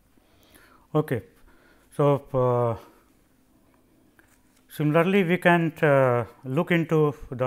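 A middle-aged man speaks calmly and slowly into a close microphone.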